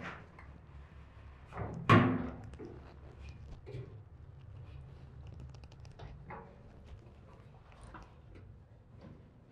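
Shoes knock and scrape on metal rungs.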